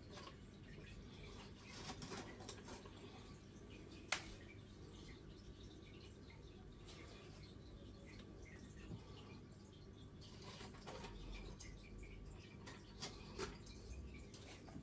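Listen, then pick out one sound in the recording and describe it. Water splashes and trickles softly close by.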